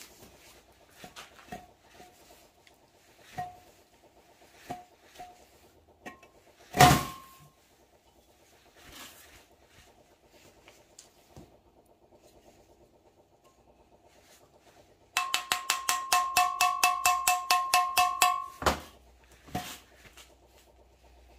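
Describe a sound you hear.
A metal tin knocks and clatters on a metal tabletop.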